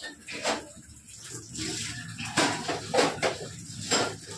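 Water runs from a tap and splashes into a metal sink.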